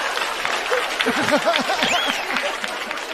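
A man laughs loudly nearby.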